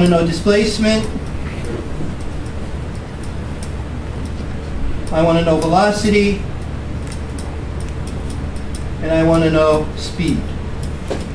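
A man speaks in short bursts, lecturing.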